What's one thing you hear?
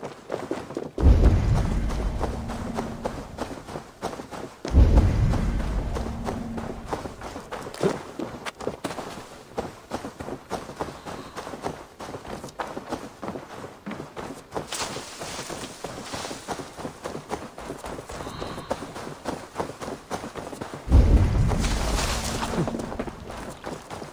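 A deep rumbling whoosh swells up suddenly and slowly fades.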